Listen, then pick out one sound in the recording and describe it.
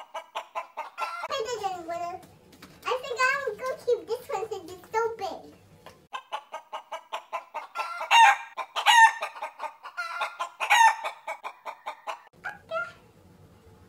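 A cartoonish, high-pitched voice speaks with animation.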